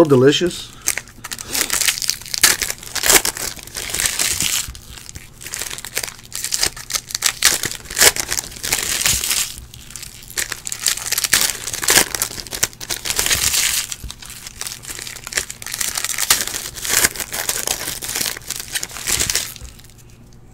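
Foil card wrappers crinkle and tear as hands rip open packs.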